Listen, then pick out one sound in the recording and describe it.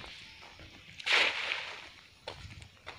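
A cast net splashes down onto water.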